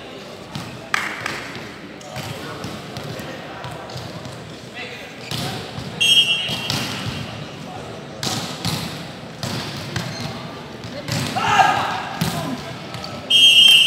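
A volleyball is struck with sharp slaps during a rally.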